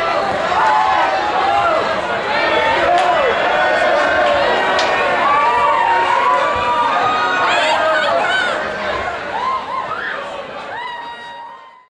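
A large crowd cheers and screams loudly in a big echoing hall, then fades.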